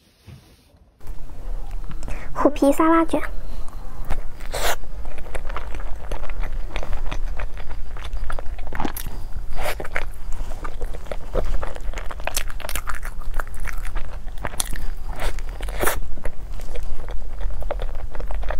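A young woman chews and munches soft food close to a microphone.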